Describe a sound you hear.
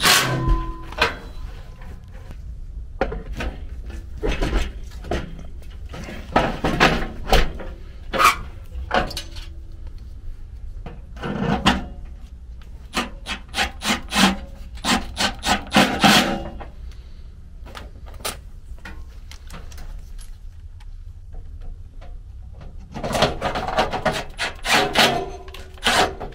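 Metal parts clank and rattle close by.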